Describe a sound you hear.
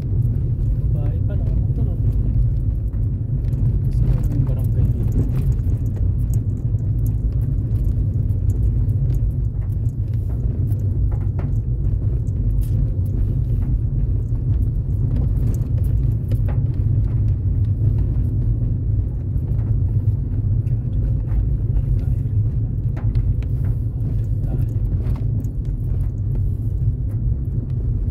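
A car drives along a road, heard from inside with a low rumble.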